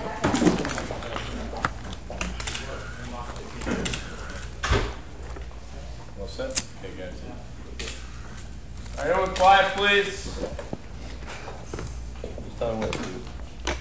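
A young man speaks calmly and hesitantly, close by.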